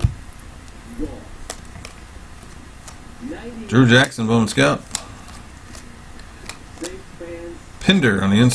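Trading cards flick and rustle in hands.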